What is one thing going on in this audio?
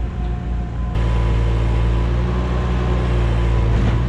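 A tracked skid steer loader drives up with its engine droning.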